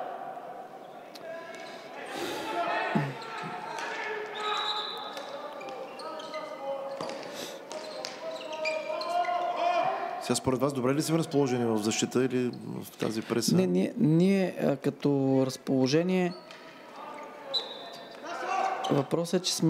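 Hockey sticks clack against a ball on a hard indoor floor.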